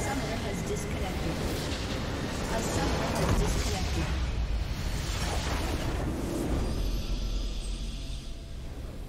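A huge structure explodes with a loud, rumbling blast.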